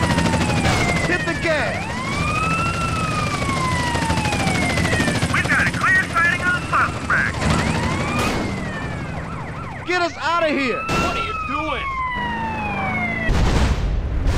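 A police siren wails close by, rising and falling.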